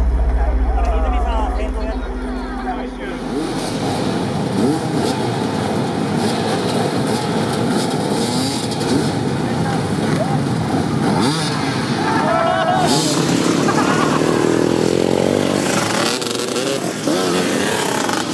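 Many motorcycle engines idle and rev loudly outdoors.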